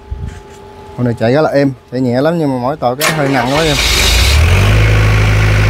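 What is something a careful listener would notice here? A diesel generator engine cranks and sputters to life.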